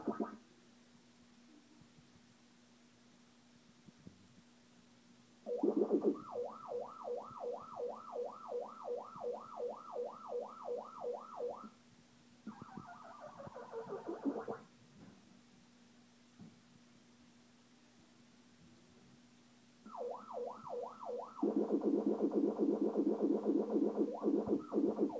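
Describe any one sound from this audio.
An arcade machine hums steadily and low.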